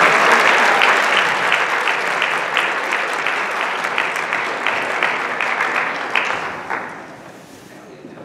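An audience applauds in a large echoing hall and the applause fades away.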